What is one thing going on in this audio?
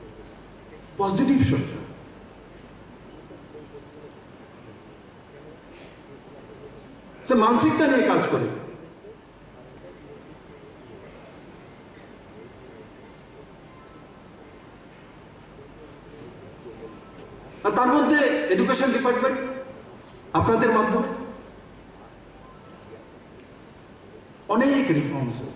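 A man speaks forcefully into a microphone over a loudspeaker, in bursts with pauses between.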